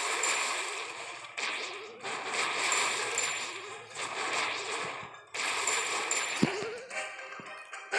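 Game sound effects of an attack clash and burst repeatedly.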